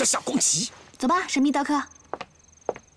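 A young woman speaks brightly, close by.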